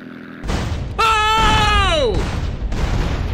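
A man exclaims loudly into a microphone, his voice sliding down.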